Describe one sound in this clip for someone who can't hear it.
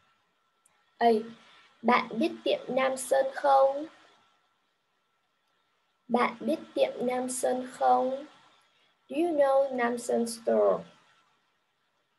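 A young woman speaks clearly and slowly over an online call, as if reading out.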